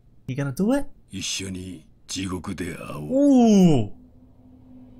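A man speaks in a low, threatening voice.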